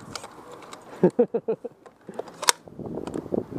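A paintball marker fires a quick burst of sharp pops close by.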